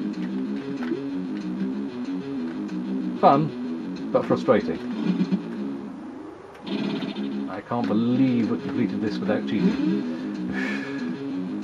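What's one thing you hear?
Bouncy electronic game music plays.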